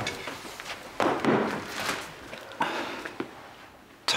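A middle-aged man speaks firmly, close by.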